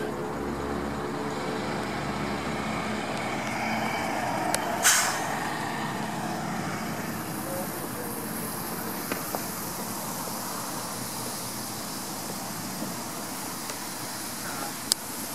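Traffic hums steadily in the distance outdoors.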